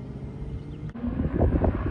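Car engines rumble on a racetrack nearby.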